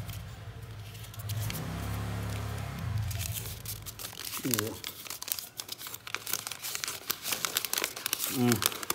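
A paper towel rustles and crinkles as it is rubbed against a plastic casing.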